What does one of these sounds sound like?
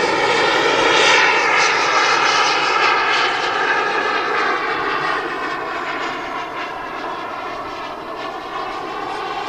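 A jet engine roars loudly overhead and slowly fades as the aircraft passes.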